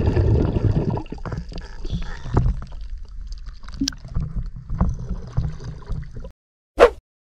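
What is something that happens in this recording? Small waves lap and splash gently at the water's surface.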